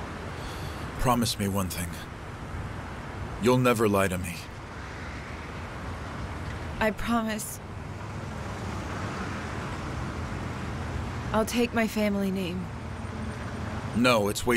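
A young man speaks softly and tenderly close by.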